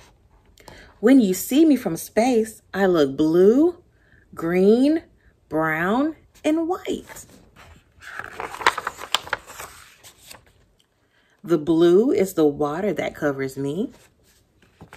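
A young woman reads aloud with expression, close by.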